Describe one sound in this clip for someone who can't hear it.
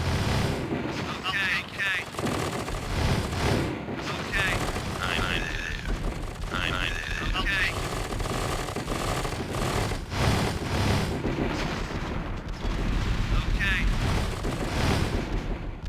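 Explosions boom repeatedly.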